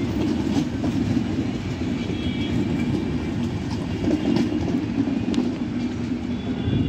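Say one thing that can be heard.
A passenger train rumbles steadily past close by.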